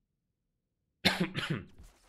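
A man speaks briefly and calmly, close to a microphone.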